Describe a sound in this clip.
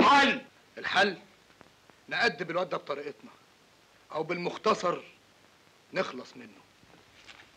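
A man speaks intently and close by.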